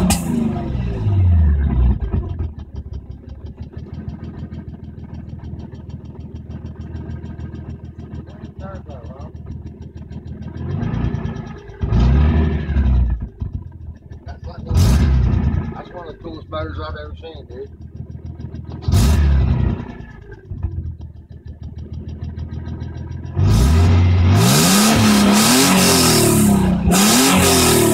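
A car engine idles with a steady rumble.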